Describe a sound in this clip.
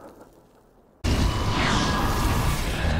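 Flames burst with a loud whooshing roar.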